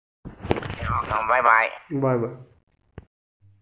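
A man speaks cheerfully through an online call.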